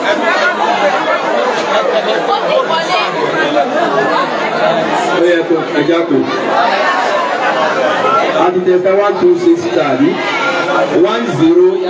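An adult man speaks with animation into a microphone through a loudspeaker.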